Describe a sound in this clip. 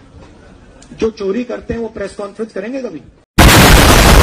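A man speaks into a microphone with animation, through a loudspeaker.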